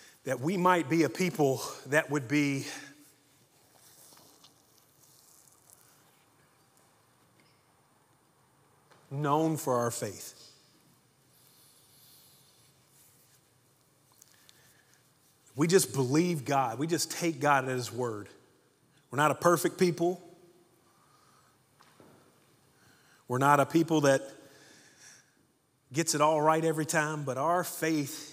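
A man speaks with animation through a microphone in a large room, pausing often.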